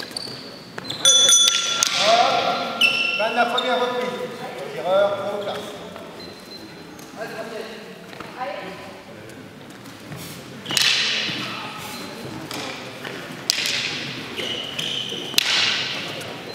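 Wooden canes clack against each other in a large echoing hall.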